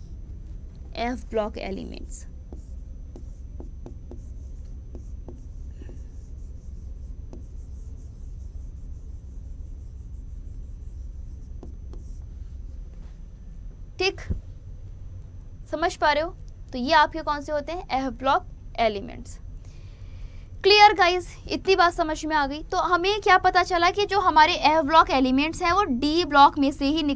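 A young woman speaks calmly into a microphone, explaining.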